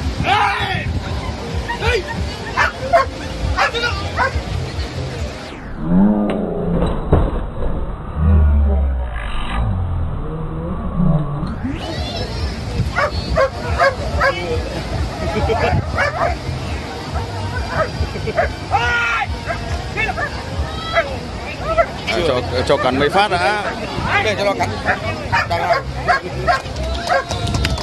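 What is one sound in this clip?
A crowd of young men talks and shouts excitedly outdoors.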